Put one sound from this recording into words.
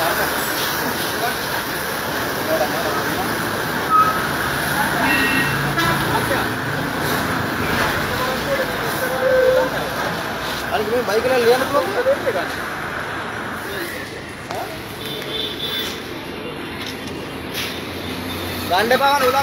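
Men talk with agitation close by.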